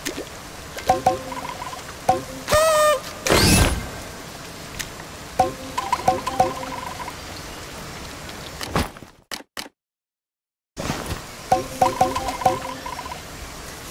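Short bright chimes ring in quick bursts as coins are collected.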